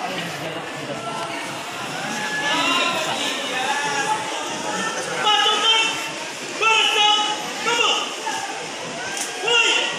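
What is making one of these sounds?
A young person shouts drill commands outdoors.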